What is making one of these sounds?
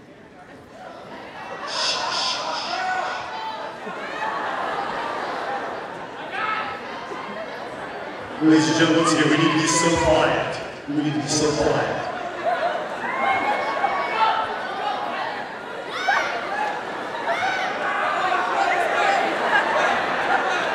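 A large crowd of young people cheers and shouts in a big echoing hall.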